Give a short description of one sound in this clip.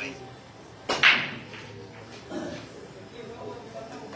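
Billiard balls knock together and roll across the table.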